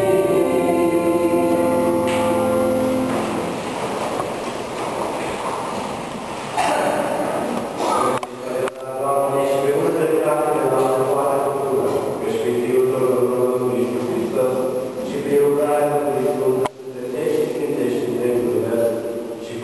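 A man chants through a microphone in a large echoing hall.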